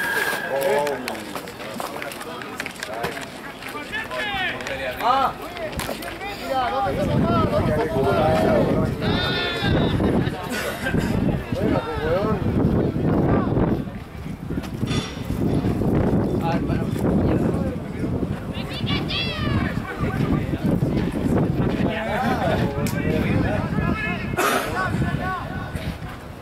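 Players shout and call out to each other across an open field.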